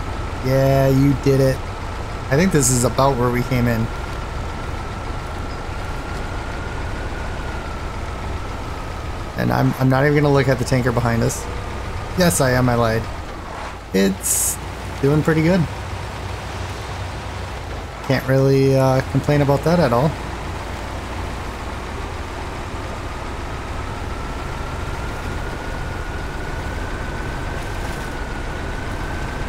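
A heavy truck engine rumbles steadily as the truck drives slowly.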